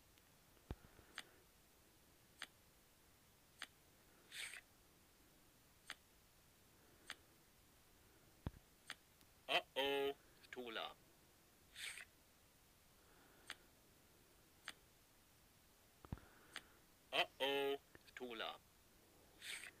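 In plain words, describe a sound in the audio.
Cards snap down one after another with short clicks.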